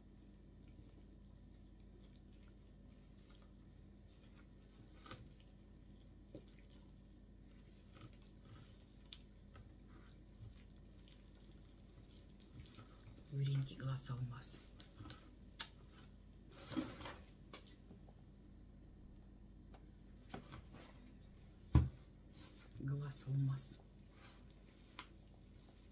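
Hands squish and knead soft dough in a bowl.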